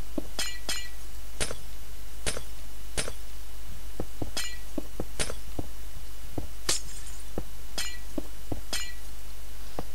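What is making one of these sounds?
Short block-placing clicks sound in a video game.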